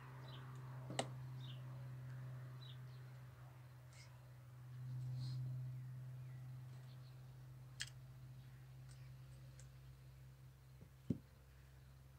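Metal clanks sharply a few times.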